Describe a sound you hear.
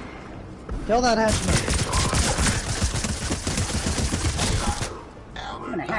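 Rapid gunshots fire in quick bursts.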